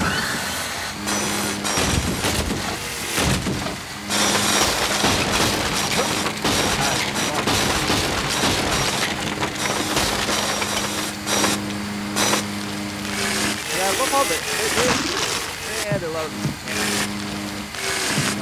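A vacuum cleaner whirs steadily.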